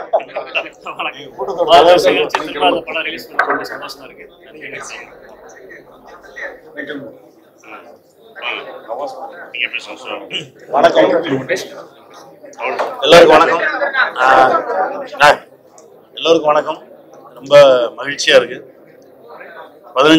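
A crowd of men chatter and laugh close by.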